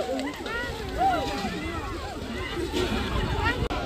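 People splash through shallow water.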